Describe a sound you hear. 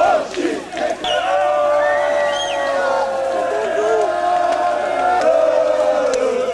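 A crowd of fans sings together in long drawn-out notes.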